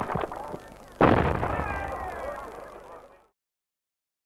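A large crowd outdoors cheers and applauds, then fades.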